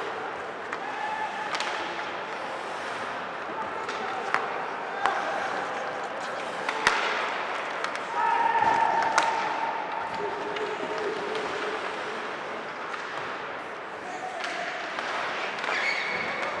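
Young men shout to one another across the rink.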